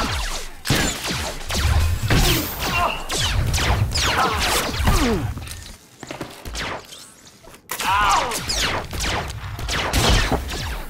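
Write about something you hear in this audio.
Blows and impacts thud and crack in a fight.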